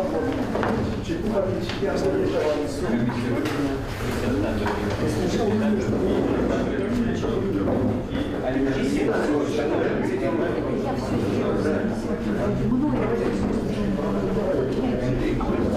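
Footsteps shuffle on a floor.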